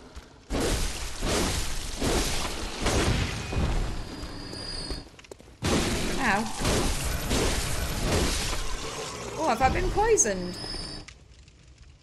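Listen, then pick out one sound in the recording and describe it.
Swords slash and strike in a fast fight.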